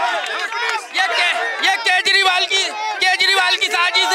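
A man shouts slogans up close.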